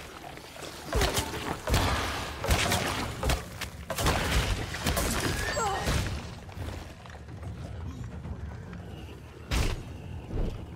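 Heavy blows thud during a struggle.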